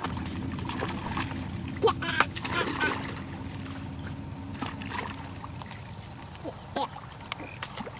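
A hoe chops into wet mud.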